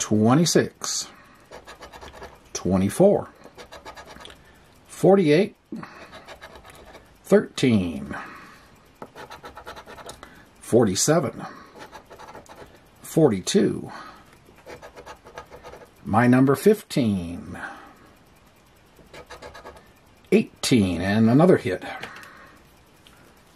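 A coin scrapes rapidly across a scratch card.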